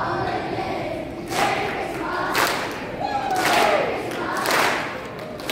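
A children's choir sings together in a large echoing hall.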